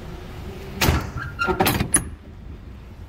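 A metal latch and padlock rattle against a truck door.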